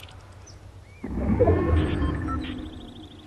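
A game alert sounds.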